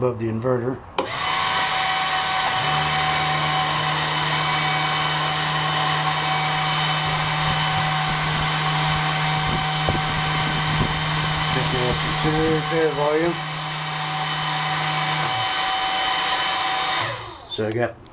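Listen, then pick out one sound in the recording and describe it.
An electrical unit hums steadily.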